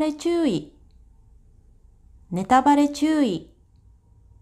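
A young woman speaks clearly and slowly close to a microphone.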